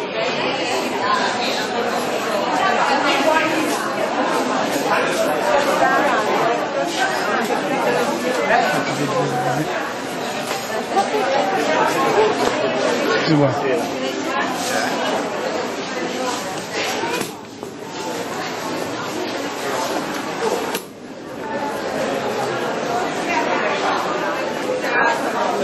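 A crowd of people chatters in an echoing indoor space.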